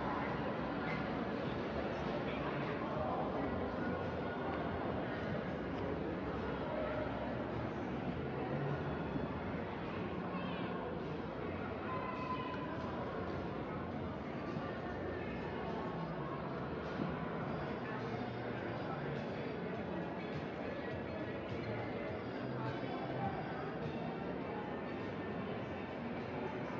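Many people's voices murmur and echo through a large indoor hall.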